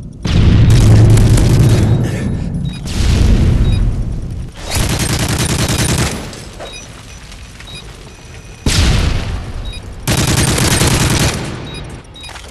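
Rapid gunfire rings out in loud bursts.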